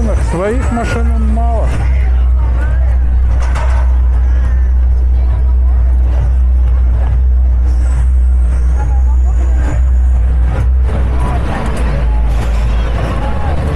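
Voices of a crowd chatter in the distance.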